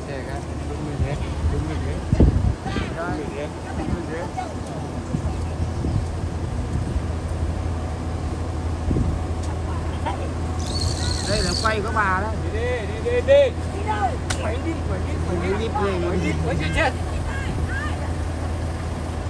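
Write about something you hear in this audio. A bus engine idles with a steady low hum.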